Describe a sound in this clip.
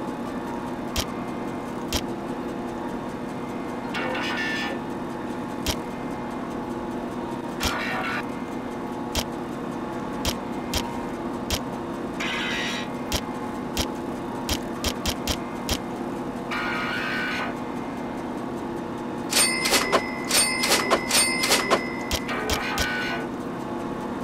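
Short soft clicks tick as a menu selection moves from item to item.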